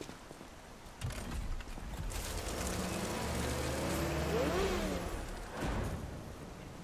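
A heavy wooden door creaks and grinds open.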